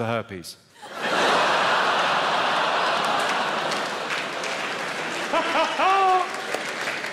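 A large audience laughs and applauds in an echoing hall.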